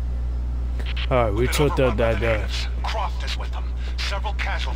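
A man speaks tensely over a crackling radio.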